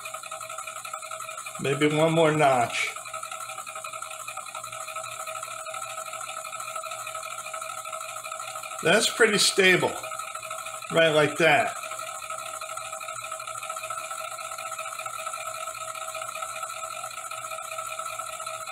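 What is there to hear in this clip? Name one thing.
A small spinning device whirs steadily.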